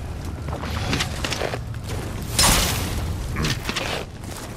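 A fiery burst of magic crackles and roars.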